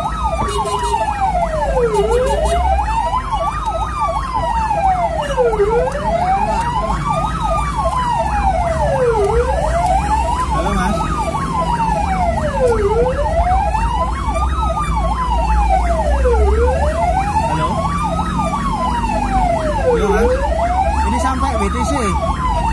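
A siren wails up and down steadily, close by.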